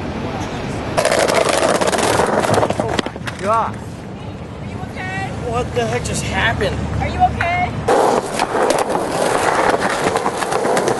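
Skateboard wheels roll loudly over pavement.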